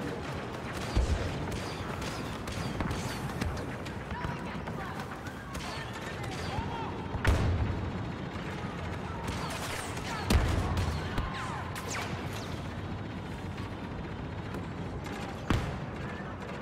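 Blaster shots fire now and then and echo in a tunnel.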